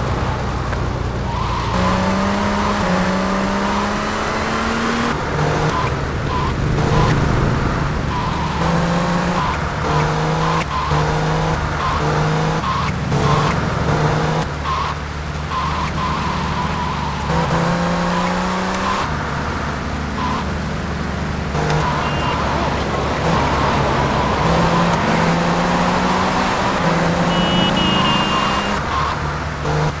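A car engine revs and shifts up through its gears.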